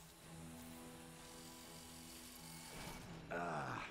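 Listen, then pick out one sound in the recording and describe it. A heavy metal door slides open on a machine.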